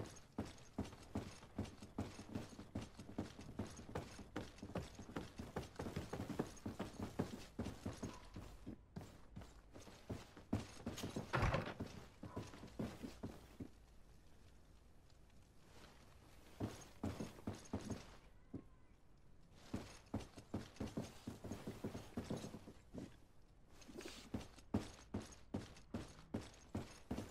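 Footsteps thud quickly on wooden floors and stairs.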